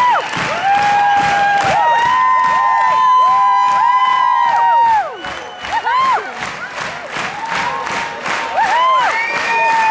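A crowd whistles with long rising and falling notes.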